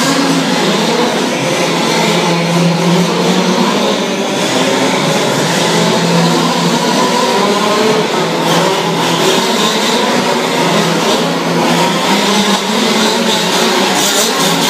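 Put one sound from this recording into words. Small engines of radio-controlled cars buzz and whine loudly as they race around.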